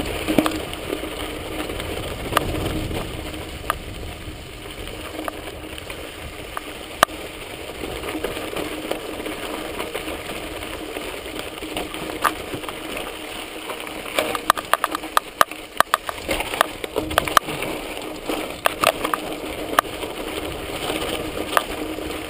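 A bicycle rattles and clatters over bumps and rocks.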